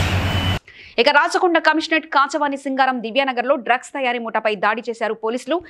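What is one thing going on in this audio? A woman reads out the news calmly and clearly into a microphone.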